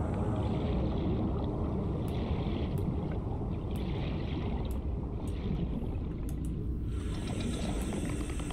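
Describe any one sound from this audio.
Deep underwater rumbling churns steadily.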